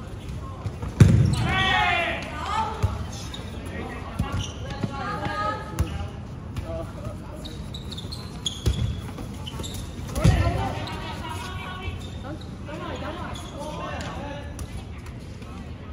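Balls thud on a hard floor and against players.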